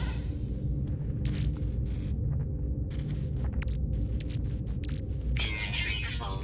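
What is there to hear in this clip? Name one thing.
Soft electronic blips sound as menu items are selected.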